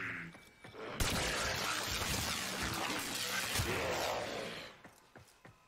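An energy weapon fires in rapid bursts.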